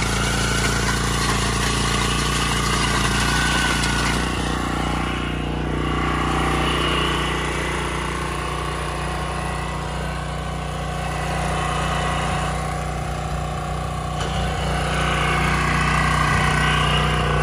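A tiller's blades churn through loose soil.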